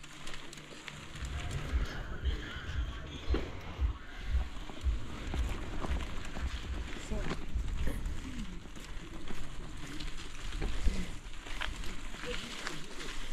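Mountain bike tyres rumble and rattle over a rough dirt road.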